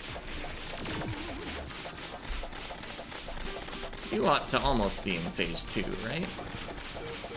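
Rapid game sound effects of shots and hits crackle throughout.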